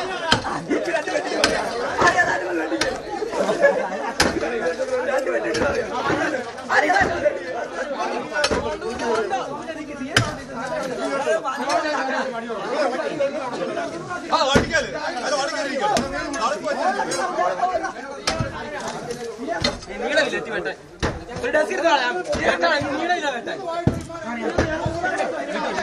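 Several men talk and call out nearby.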